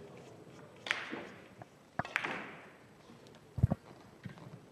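Billiard balls knock together and roll across the table.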